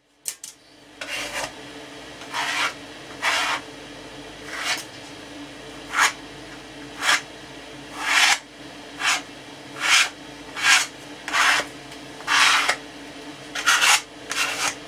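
A spray bottle hisses in short repeated bursts.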